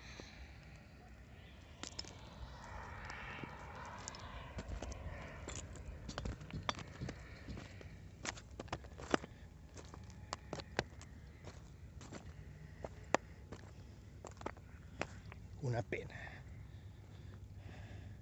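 Footsteps crunch and scrape over loose rubble and stones.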